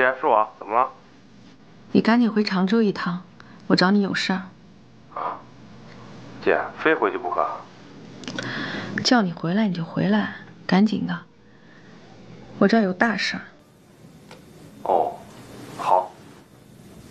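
A young woman talks on a phone, calmly and close by.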